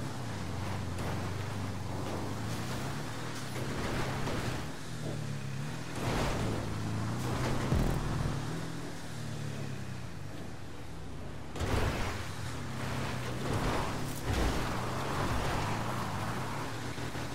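An off-road buggy engine revs and roars, rising and falling.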